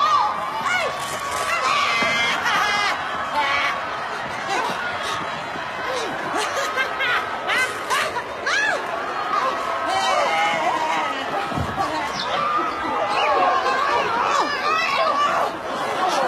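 Young women scream and shriek with excitement close by.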